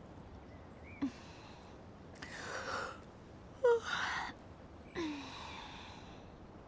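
A young woman gasps and breathes heavily close by.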